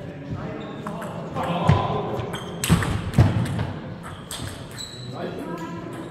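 A table tennis ball clicks back and forth off paddles and the table in a large echoing hall.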